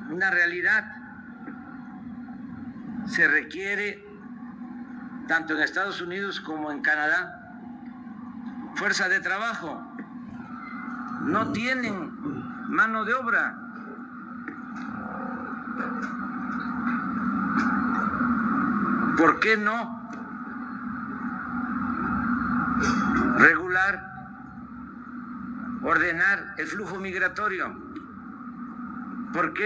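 An elderly man speaks calmly into a microphone, heard through loudspeakers outdoors.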